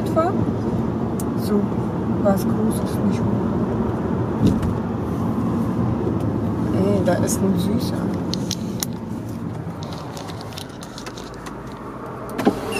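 Road noise hums steadily inside a moving car.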